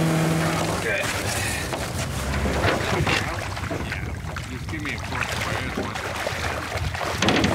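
Water splashes and sloshes as a boat is pushed through shallows.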